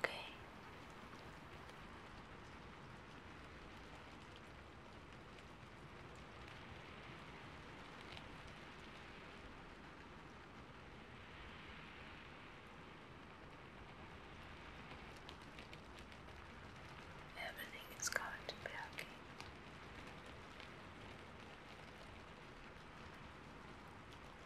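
Fingers softly rub and flutter close to a microphone.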